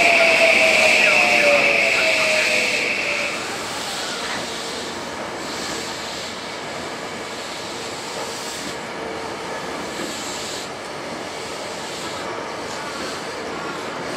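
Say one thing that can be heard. A train rumbles and clatters slowly along the tracks.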